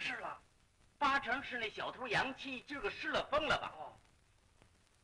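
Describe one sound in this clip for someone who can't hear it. A second man answers sharply.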